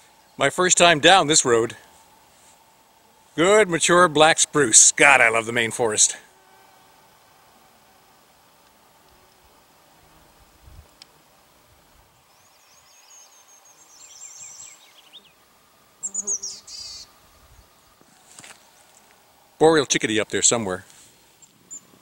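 An older man speaks calmly and close by, outdoors.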